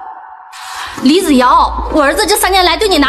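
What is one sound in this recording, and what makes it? A middle-aged woman speaks sharply and reproachfully.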